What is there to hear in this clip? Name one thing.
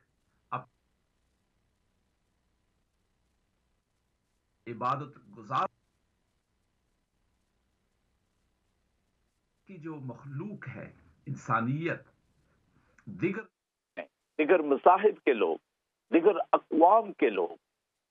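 A middle-aged man speaks with animation into a close microphone, with long pauses.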